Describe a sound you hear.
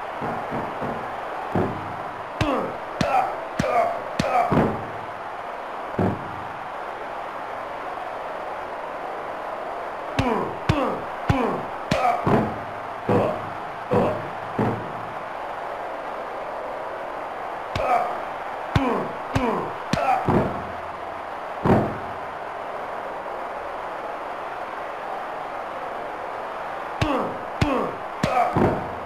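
Heavy thuds and slams of wrestlers hitting each other ring out in bursts.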